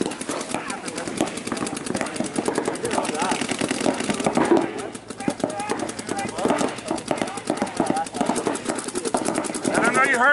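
Paintball markers fire in rapid, steady bursts nearby.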